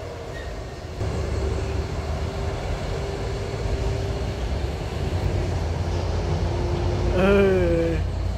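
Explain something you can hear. Truck engines rumble and strain.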